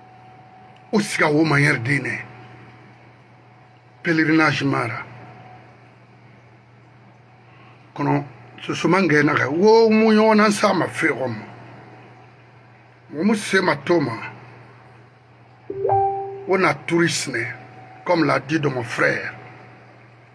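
A middle-aged man speaks with animation close to a microphone, in bursts with pauses.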